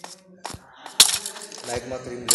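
A sword strikes a rattling skeleton with a sharp hit.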